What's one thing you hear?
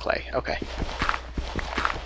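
Stone blocks crunch as they are broken.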